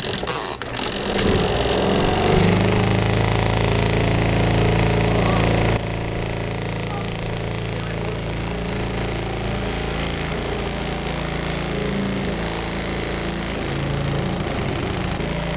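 A small washing machine hums and churns water steadily.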